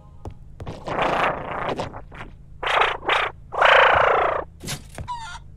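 A man speaks with animation in a deep, gruff voice.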